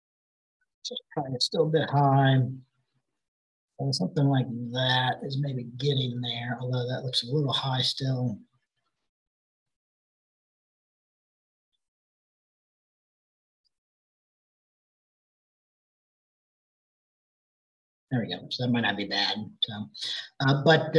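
A man speaks calmly and explains, close to a microphone, as if on an online call.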